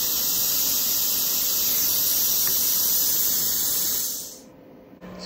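A machine's cooling fan whirs steadily.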